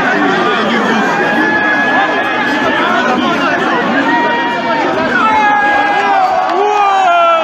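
Men and women cry out and sing in long high calls among the crowd.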